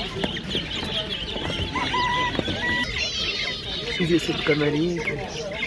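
Canaries chirp and whistle.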